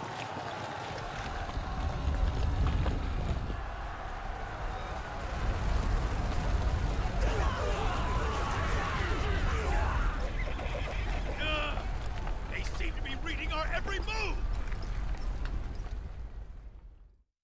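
Heavy boulders rumble and crash down a slope.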